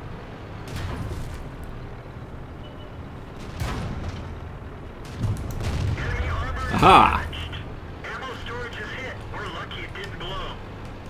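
A tank cannon fires with loud booms.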